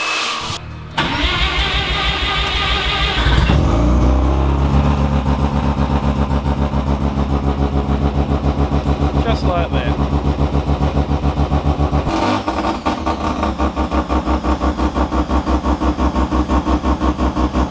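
A car engine idles with a steady, even throb.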